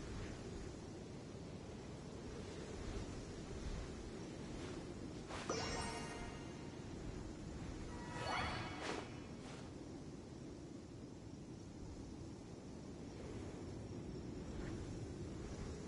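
Wind blows steadily across open grass outdoors.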